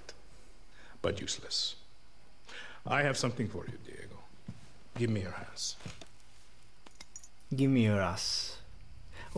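A man talks in short phrases into a close microphone.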